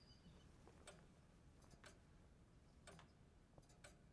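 A young woman's bare feet patter softly on a hard floor.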